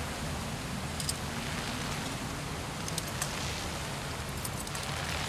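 Hands grip and creak on a rope during a climb.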